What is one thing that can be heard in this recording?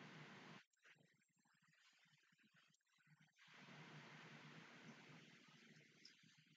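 A young woman speaks quietly and casually into a microphone close by.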